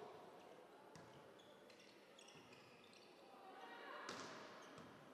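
A volleyball is struck hard in a large echoing hall.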